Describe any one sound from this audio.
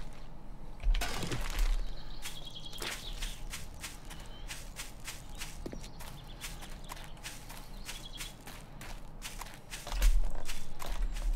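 Footsteps crunch and rustle through dry grass.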